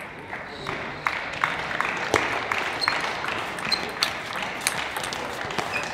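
A table tennis ball clicks back and forth off paddles and the table in a large hall.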